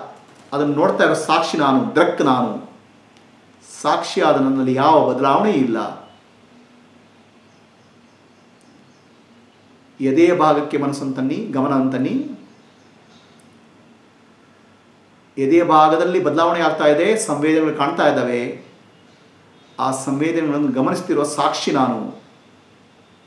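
A middle-aged man sings slowly and expressively close to a microphone, in phrases with pauses between them.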